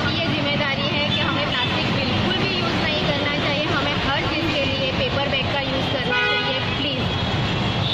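A young woman speaks into a microphone up close.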